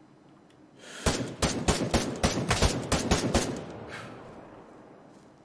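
Rapid gunshots crack in a fast burst and echo away.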